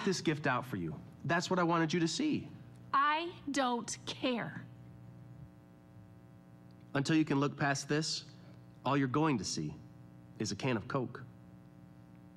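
A young man talks calmly, heard through a loudspeaker.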